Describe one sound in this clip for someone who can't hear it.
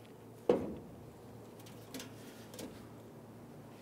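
Metal parts knock and clatter against a truck bed.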